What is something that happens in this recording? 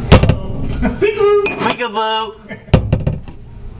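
A young man talks excitedly close to the microphone.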